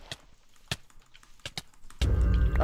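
Sharp hits of a sword strike in quick succession.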